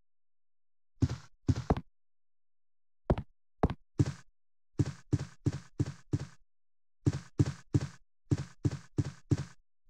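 Footsteps knock on a wooden floor, walking and then running.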